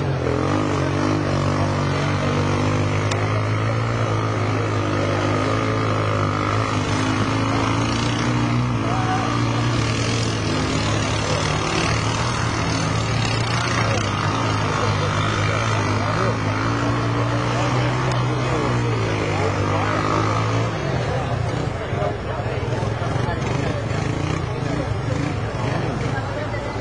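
An all-terrain vehicle engine roars and revs nearby, rising and falling in pitch.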